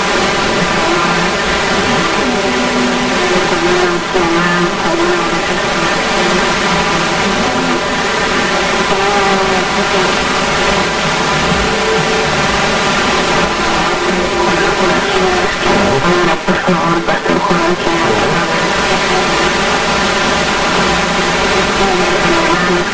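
A radio broadcast plays steadily through a receiver.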